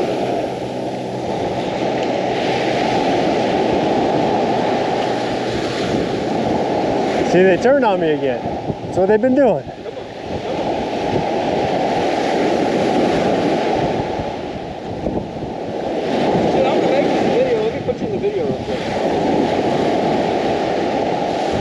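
Surf washes onto the shore nearby.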